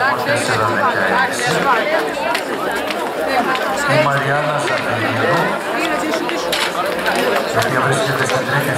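Men and women chatter nearby, outdoors.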